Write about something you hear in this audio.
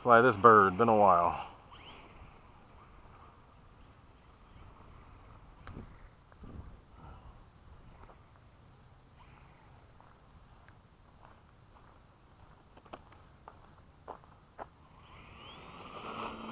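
A small model plane's motor whines in short rising bursts.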